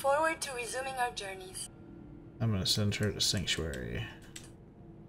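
A robot speaks in a synthetic, chirpy voice.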